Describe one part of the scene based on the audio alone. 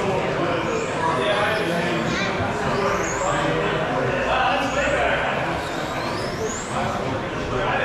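A small electric motor whines, rising and falling in pitch as a model car speeds past.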